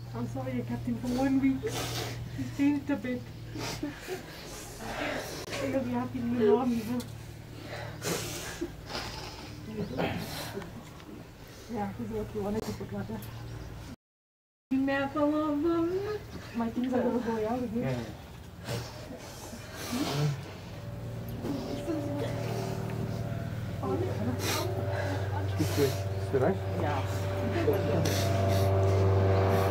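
Men and women murmur and talk quietly nearby.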